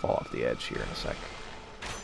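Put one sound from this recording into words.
A magic spell bursts with a bright, shimmering whoosh.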